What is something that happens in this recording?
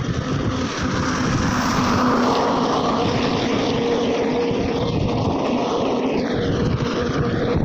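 A truck's engine rumbles in the distance.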